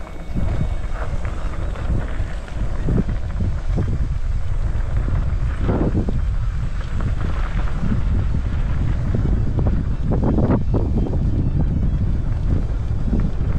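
Bicycle tyres crunch and rattle over a gravel dirt trail.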